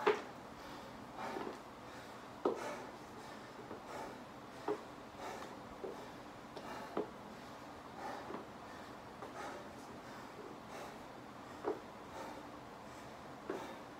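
Footsteps thud softly on a floor.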